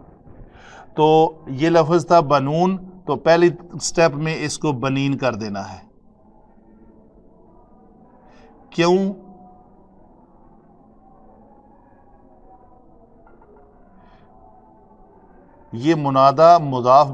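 A middle-aged man speaks calmly, as if teaching.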